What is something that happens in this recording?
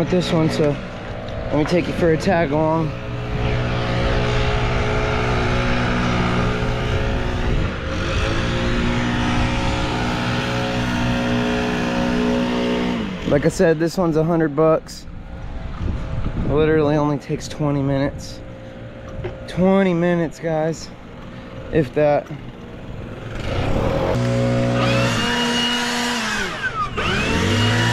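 A lawn mower engine runs steadily nearby.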